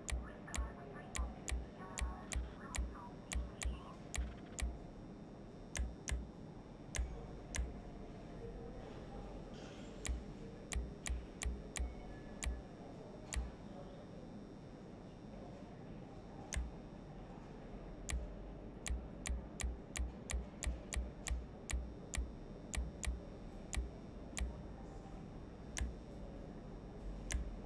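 Short game menu clicks tick again and again, sometimes in quick runs.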